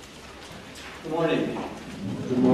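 An older man speaks calmly through a microphone in an echoing hall.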